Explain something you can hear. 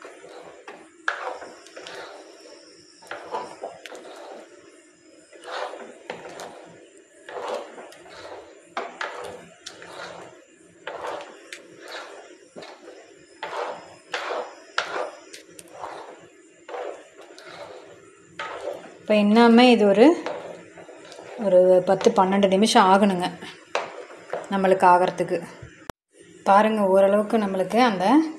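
A wooden spoon scrapes and squelches through thick, sticky syrup in a metal pan.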